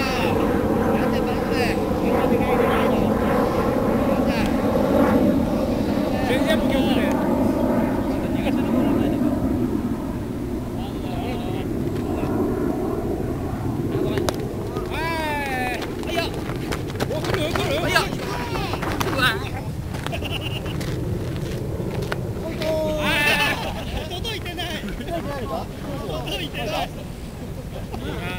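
Wind blows outdoors, rumbling across the microphone.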